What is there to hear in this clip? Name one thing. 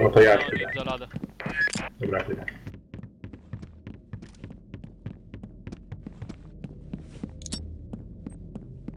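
Footsteps thud on a wooden floor at a steady walking pace.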